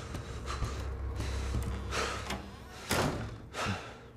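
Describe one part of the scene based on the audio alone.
A wooden door swings shut with a thud.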